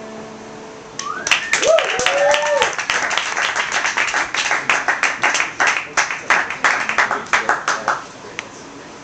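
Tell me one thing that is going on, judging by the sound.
A small audience claps and cheers loudly.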